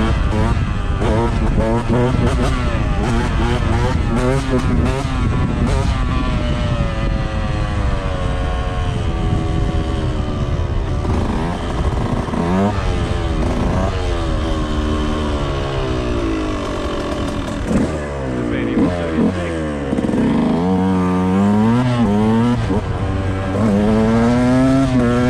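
A motorcycle engine hums and revs steadily.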